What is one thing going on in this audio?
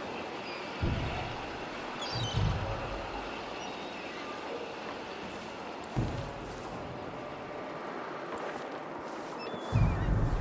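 Heavy footsteps thud on a hard floor.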